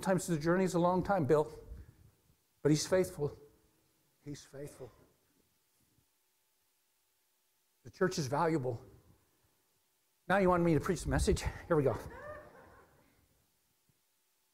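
A middle-aged man speaks with animation through a microphone in an echoing hall, pausing often.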